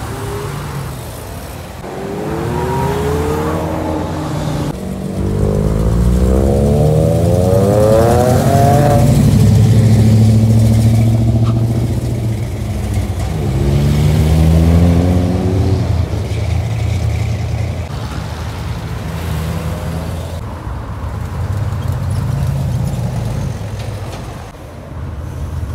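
Car engines rumble as vehicles drive past one after another.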